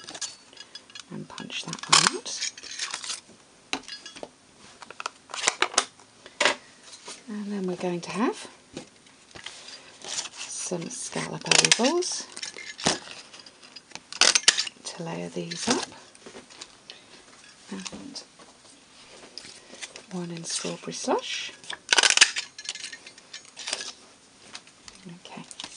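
Paper rustles and slides against a table.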